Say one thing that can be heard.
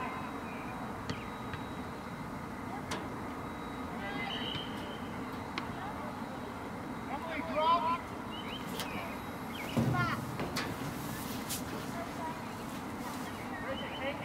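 A soccer ball is kicked with dull thuds.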